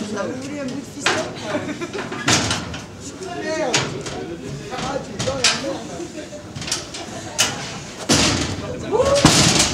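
Metal cage bars rattle and clank.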